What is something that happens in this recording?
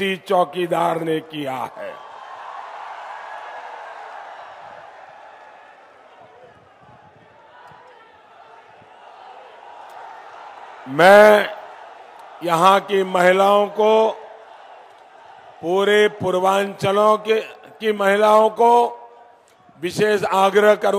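A man speaks forcefully through a loudspeaker outdoors.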